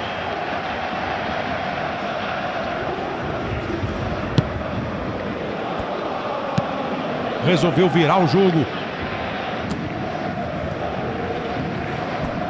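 A large crowd murmurs and cheers steadily in a big stadium.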